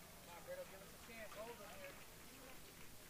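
Young men call out to each other in the distance outdoors.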